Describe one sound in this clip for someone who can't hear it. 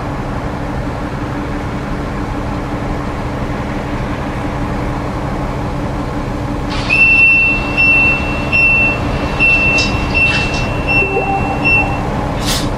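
A bus engine hums steadily at a low pitch.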